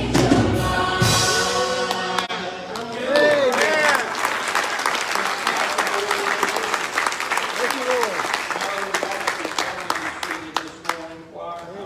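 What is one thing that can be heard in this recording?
A band and a crowd sing together in a large echoing hall.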